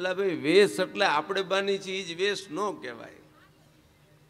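A man sings expressively through a microphone and loudspeakers.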